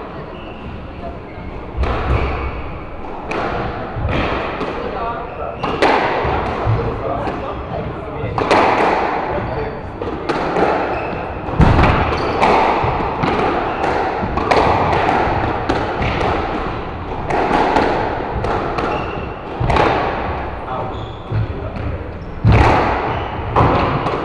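Shoes squeak and patter on a wooden floor.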